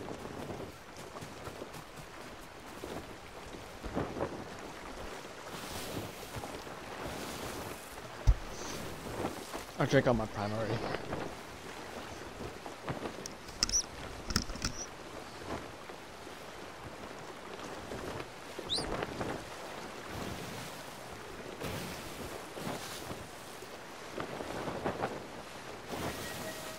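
Wind blows steadily over open water.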